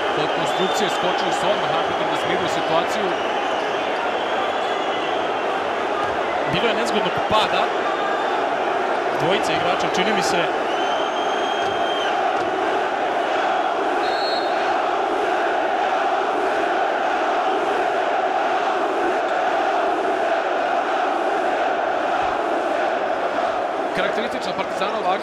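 A large arena crowd roars and chants loudly.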